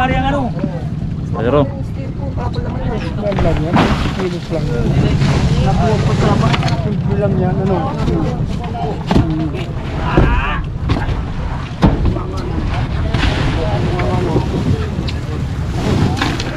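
A heavy cooler thumps and scrapes on a wooden deck.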